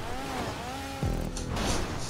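A car lands hard with a thud.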